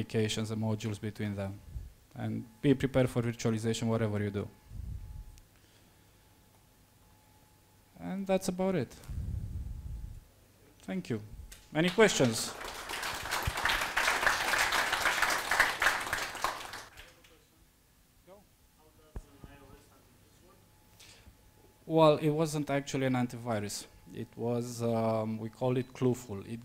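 A man speaks calmly into a microphone in a room with some echo.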